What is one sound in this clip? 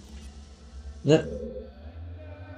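A game character lands on stone with a sharp thud.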